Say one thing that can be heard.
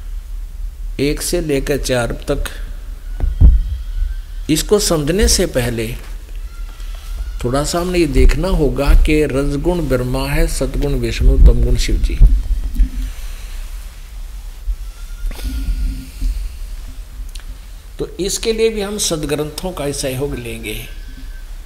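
An elderly man speaks calmly, close by, in short bursts with pauses.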